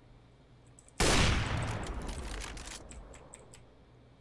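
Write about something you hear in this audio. A sniper rifle fires a single loud shot that echoes and slowly fades.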